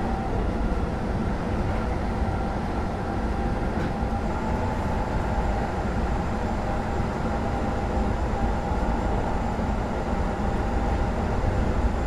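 An electric motor hums steadily.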